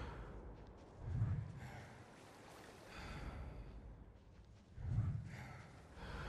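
Low thuds sound as a figure climbs.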